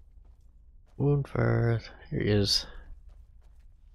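A man speaks loudly and with animation close to a microphone.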